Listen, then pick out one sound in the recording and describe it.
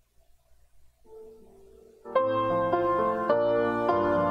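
A small group of musicians plays music.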